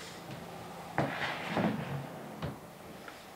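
A wooden chair scrapes and knocks on the floor.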